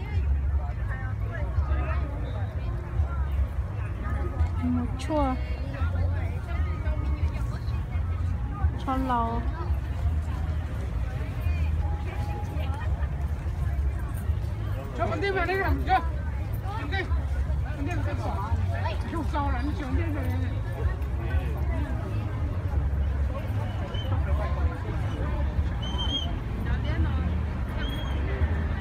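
Adult voices chat nearby outdoors.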